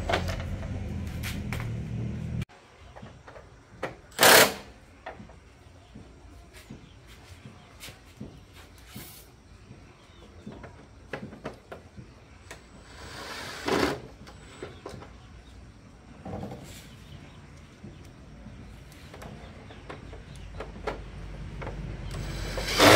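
Metal tools clink and tap against motorbike parts.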